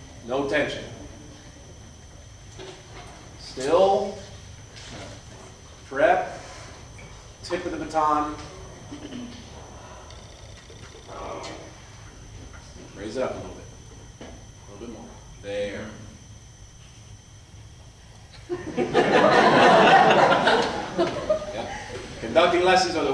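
A young man speaks calmly to a group.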